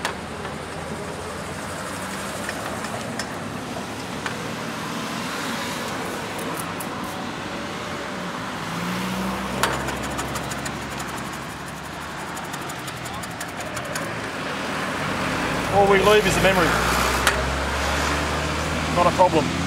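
A cloth rubs against a pole.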